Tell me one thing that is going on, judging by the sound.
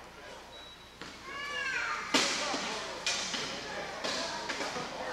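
Wheelchairs bang and clatter into each other.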